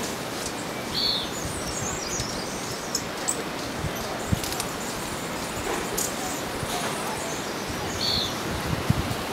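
A small bird gives short, high chirps.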